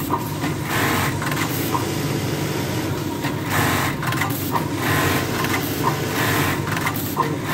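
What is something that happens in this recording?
A sewing machine whirs and clatters in rapid bursts.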